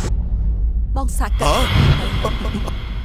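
A man exclaims loudly in surprise.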